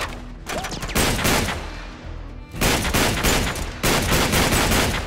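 An automatic rifle fires in bursts.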